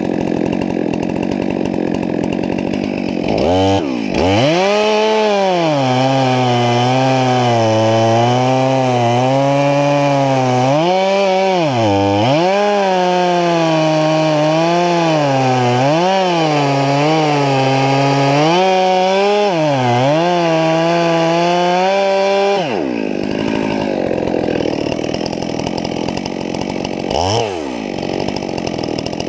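A chainsaw engine idles roughly.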